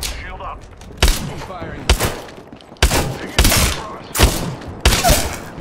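Gunshots fire in sharp, loud bursts.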